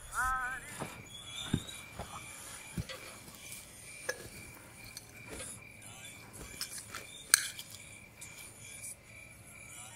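Glass clinks softly as it is handled nearby.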